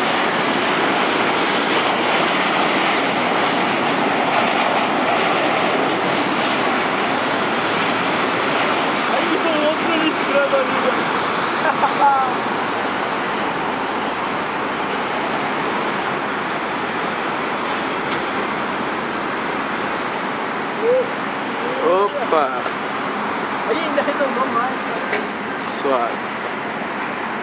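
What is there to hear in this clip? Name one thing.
A jet airliner's engines roar steadily as it descends to land.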